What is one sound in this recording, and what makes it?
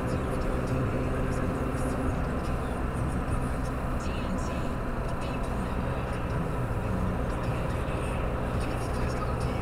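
Tyres roll and rumble on the road.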